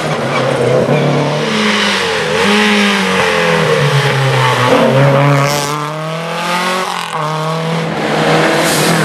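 A historic rally car engine screams at full throttle, shifting gears as it passes on tarmac.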